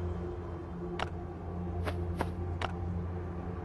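Menu buttons click softly.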